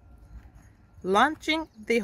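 A woman calls out loudly to a horse.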